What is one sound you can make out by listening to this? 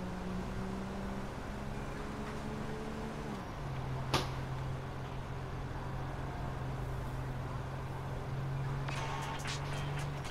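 A car engine hums steadily as cars drive along a road.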